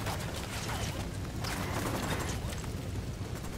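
An explosion bursts with a roar of fire.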